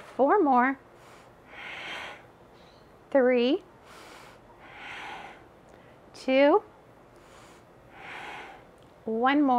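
A woman breathes deeply and slowly, in and out, close by.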